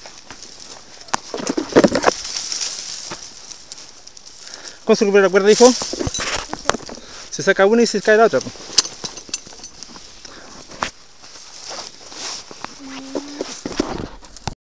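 Footsteps crunch and rustle through dry brush.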